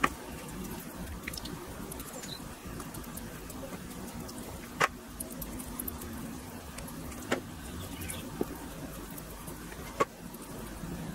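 A basting brush taps and scrapes against a metal grill rack.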